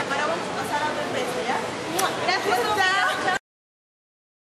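A young woman laughs and exclaims loudly close by.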